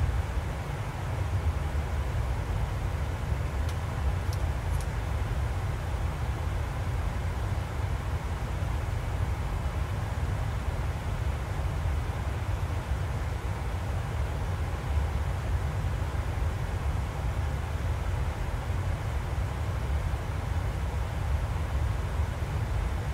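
A jet airliner's engines and rushing air drone steadily from inside the cockpit.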